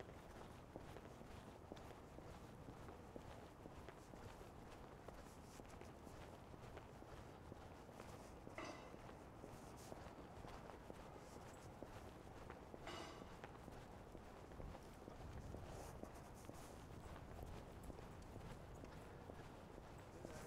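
Wind blows outdoors with a low, steady rumble.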